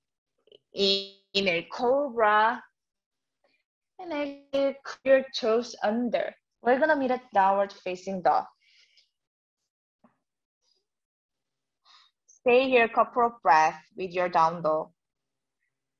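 A woman speaks calmly and clearly, close to a microphone.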